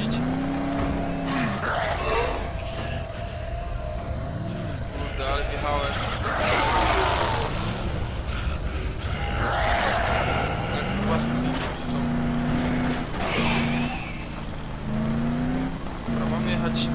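A car engine roars and rumbles steadily.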